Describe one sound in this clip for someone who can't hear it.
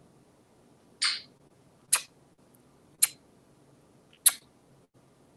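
A parrot makes short, sharp clicking sounds.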